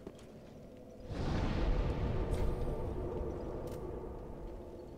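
A fire flares up with a whoosh and then crackles softly.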